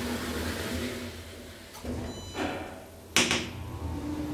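Elevator doors slide shut and close with a thud.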